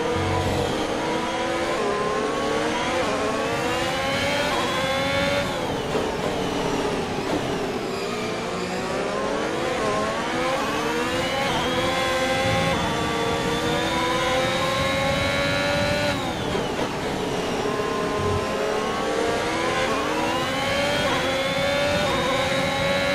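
A racing car engine screams, rising in pitch as it speeds up and dropping sharply as it slows for corners.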